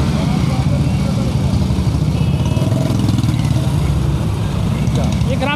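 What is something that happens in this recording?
A motorcycle engine rumbles nearby.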